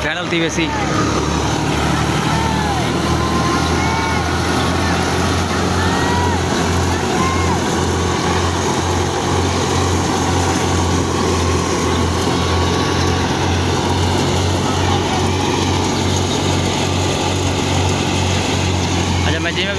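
A threshing machine engine rumbles steadily close by.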